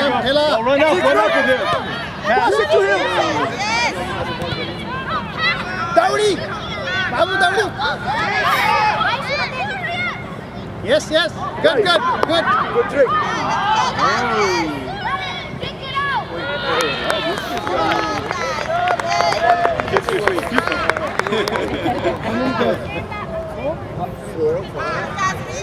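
Children shout and call out excitedly outdoors.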